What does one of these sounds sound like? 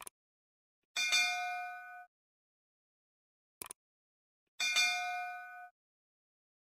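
A bell chimes brightly and fades.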